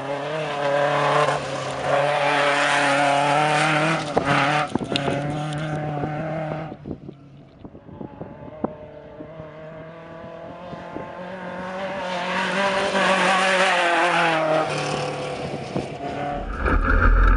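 A truck engine roars loudly as it races by.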